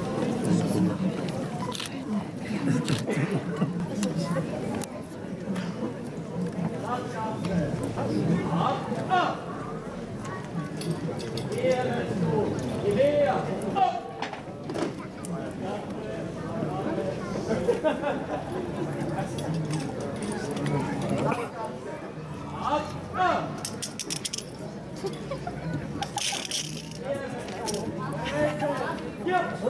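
A crowd of men and women murmurs and chatters outdoors.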